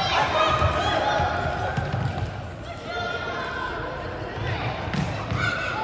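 Young men shout to each other across an echoing sports hall.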